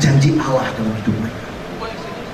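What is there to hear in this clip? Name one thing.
A man speaks loudly through a microphone in a large hall.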